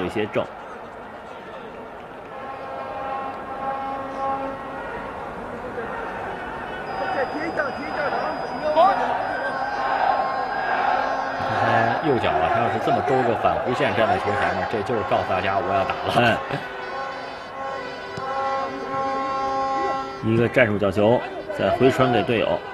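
A stadium crowd murmurs and cheers in a large open space.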